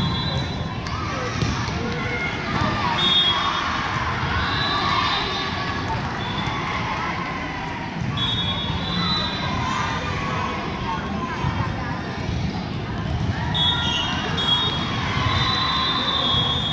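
Many people chatter and call out throughout a large echoing hall.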